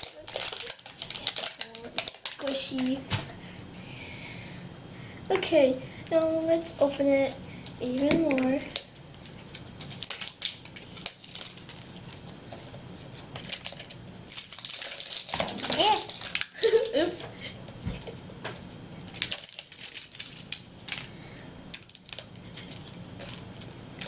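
Plastic packaging crinkles and rustles as hands tear at a toy ball.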